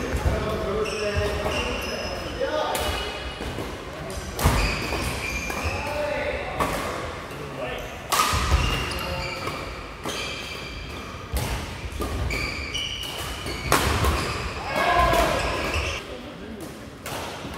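Shuttlecocks are struck sharply with rackets again and again in a large echoing hall.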